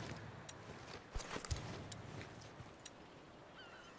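Cloth and gear rustle as someone crouches and rummages.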